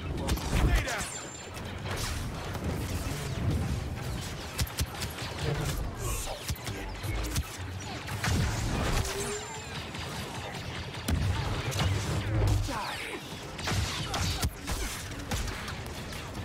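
Lightsabers hum and clash.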